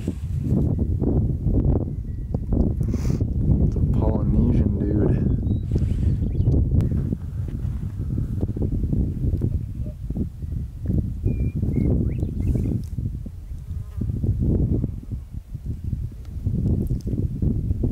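Wind blows in strong gusts against the microphone outdoors.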